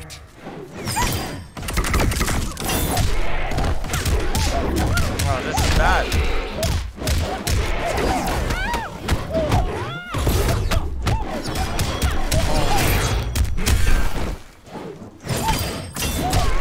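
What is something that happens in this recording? Fiery blasts whoosh and explode.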